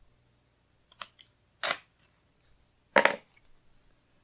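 Adhesive tape is peeled off with a short rip.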